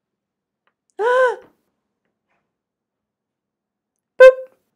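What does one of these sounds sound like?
A small electronic device gives a short chime.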